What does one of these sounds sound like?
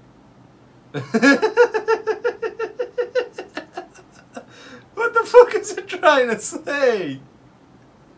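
A young man laughs loudly and heartily close to a microphone.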